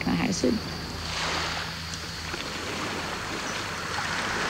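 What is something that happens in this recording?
Gentle waves wash onto a beach.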